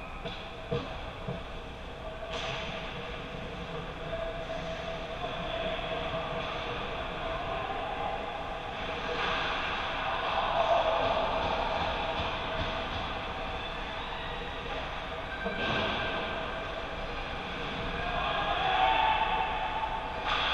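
Skates scrape and glide across ice in a large echoing rink.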